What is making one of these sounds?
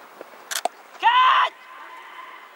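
A man shouts from a distance across an open field.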